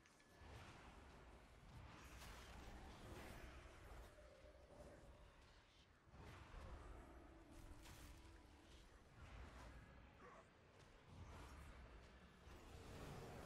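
Magic spells whoosh and crackle in a busy battle.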